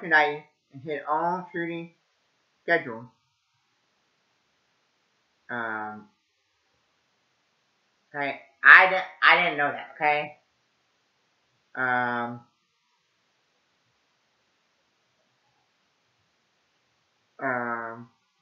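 A young man speaks close by in short, animated bursts with pauses between them.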